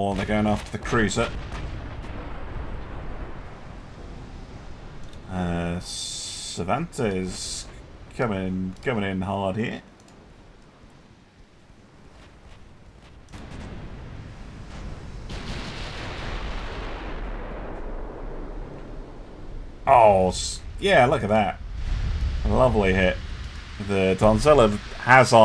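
Shells burst with heavy booms against a ship.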